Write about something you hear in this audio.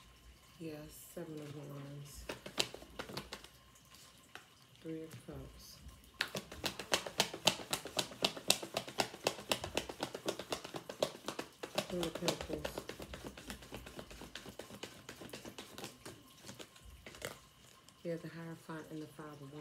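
Paper cards rustle and slide as a hand picks them up.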